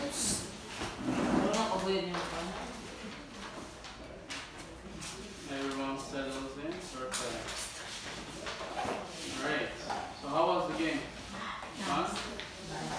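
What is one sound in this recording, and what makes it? A young man speaks calmly to the group.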